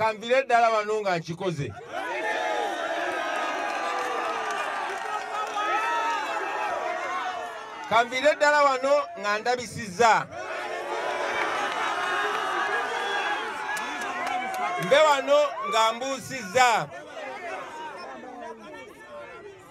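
A young man speaks forcefully into a microphone outdoors.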